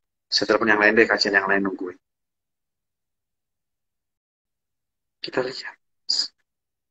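A young man speaks calmly, close to the microphone.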